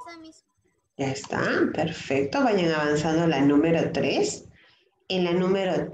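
A child speaks with animation over an online call.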